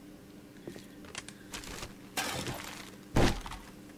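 Rustling and thuds sound as a pile of trash is searched.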